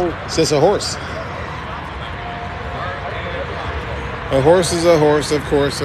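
A man talks nearby, outdoors.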